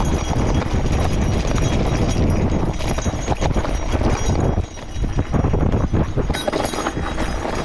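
Bicycle tyres rattle and crunch over a rough dirt track.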